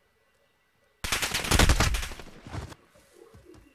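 A burst of gunfire rattles from a video game.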